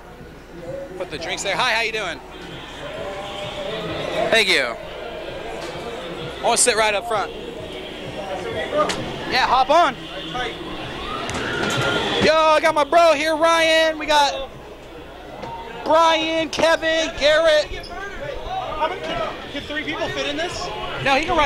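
Young men shout and whoop excitedly close by.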